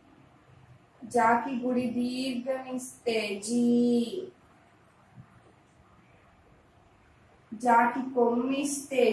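A woman speaks clearly and slowly, as if teaching.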